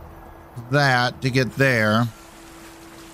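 An elderly man speaks with animation into a close microphone.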